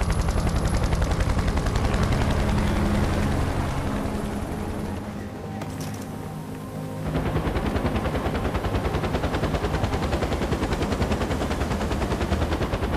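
A helicopter's rotor thumps loudly and steadily overhead.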